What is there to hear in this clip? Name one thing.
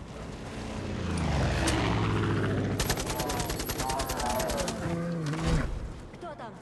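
A bear growls and roars close by.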